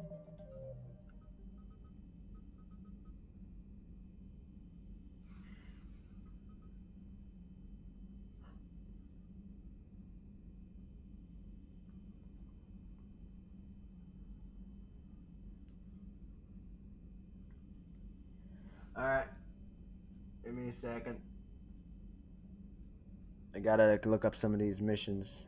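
Soft electronic menu blips sound as a list scrolls.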